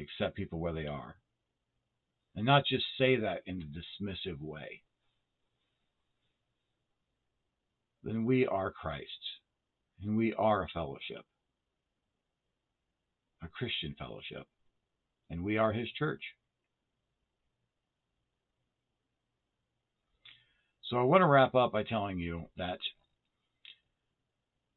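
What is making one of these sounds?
A middle-aged man speaks calmly and slowly in short phrases, close to a microphone.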